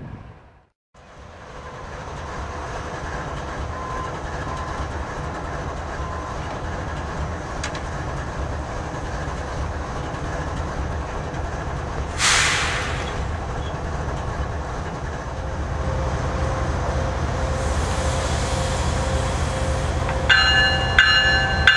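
A diesel locomotive engine drones as it approaches.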